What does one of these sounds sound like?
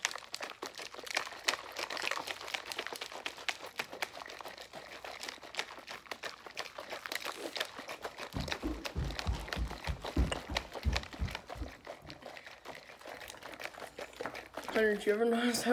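A plastic cup rattles as it is shaken close by.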